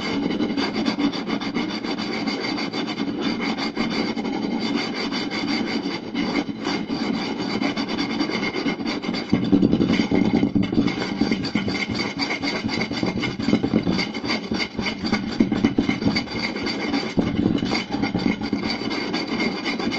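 Fingertips tap and scratch rapidly on a wooden board, close by.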